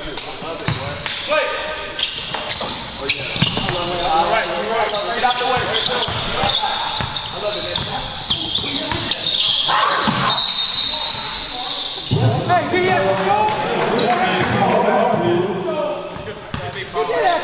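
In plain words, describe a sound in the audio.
Men shout and call out across an echoing gym.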